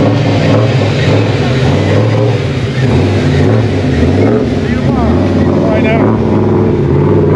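A car engine rumbles loudly and idles with a deep, uneven burble close by.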